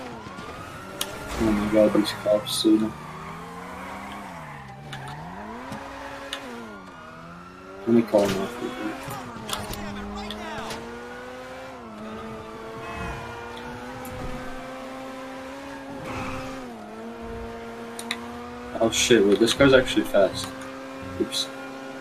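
A sports car engine revs and shifts gears as the car speeds along.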